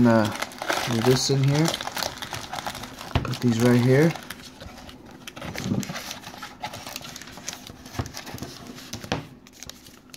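Foil card packs rustle and tap together as they are lifted out of a cardboard box and stacked.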